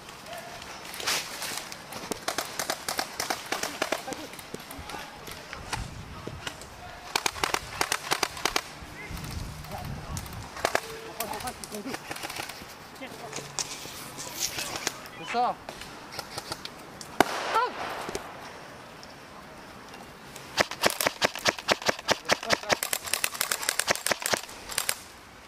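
An airsoft gun fires rapid bursts of sharp clicks close by.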